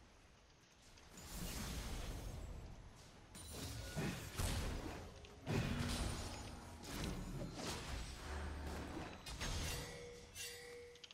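Video game spell and hit effects whoosh and crackle.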